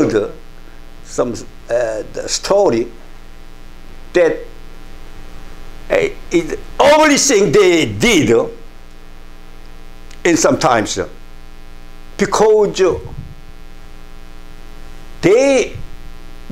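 An elderly man speaks expressively into a clip-on microphone, in bursts with pauses.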